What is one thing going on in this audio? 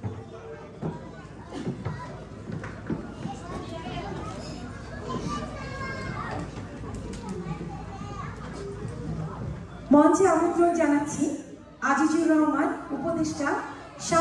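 A woman speaks into a microphone over loudspeakers in a large echoing hall.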